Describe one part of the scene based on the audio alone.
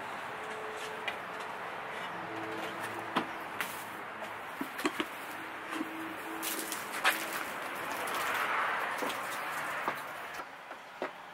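Wind rushes steadily outdoors.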